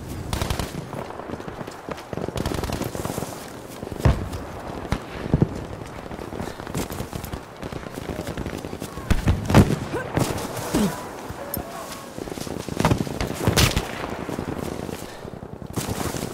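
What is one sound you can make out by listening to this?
Gunfire and explosions crack and boom in the distance.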